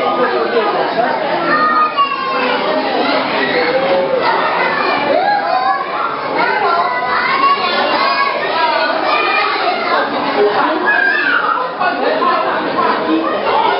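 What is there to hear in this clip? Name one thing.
Women talk nearby.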